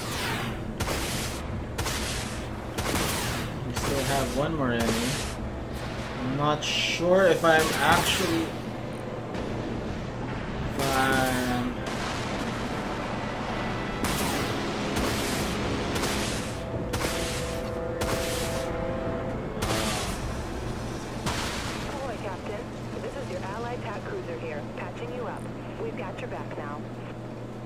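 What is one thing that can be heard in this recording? Laser shots and explosions sound from a game.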